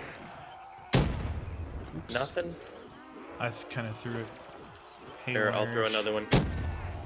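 A gun fires with loud single bangs.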